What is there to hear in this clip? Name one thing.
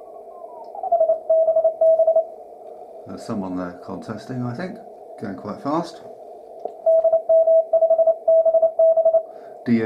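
A radio beeps out Morse code in short, even tones.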